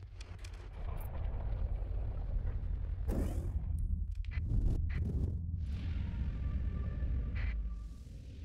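Spaceship engines roar loudly.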